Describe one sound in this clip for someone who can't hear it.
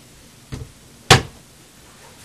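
A wooden cabinet door shuts with a sharp knock.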